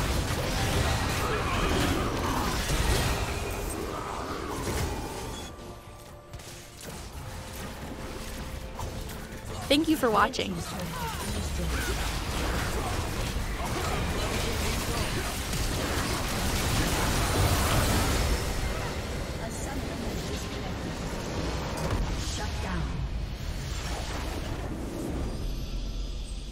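Game spells crackle and blast during a busy fight.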